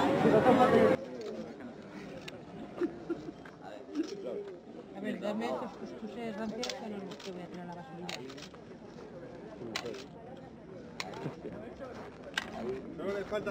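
Wooden swords clack together.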